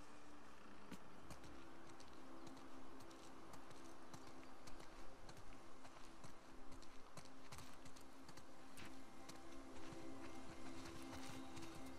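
Footsteps crunch softly on dirt and leaves.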